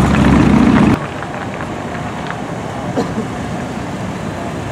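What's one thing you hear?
A car engine hums quietly as the car rolls slowly by.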